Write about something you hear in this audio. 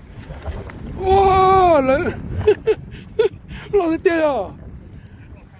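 A middle-aged man laughs close by.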